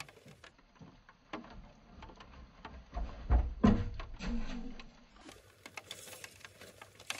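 Boots thump and scuff on wooden boards.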